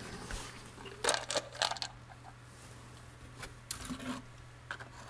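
Gloved hands rustle and click against plastic engine parts.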